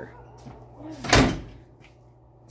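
A car door slams shut with a heavy thud.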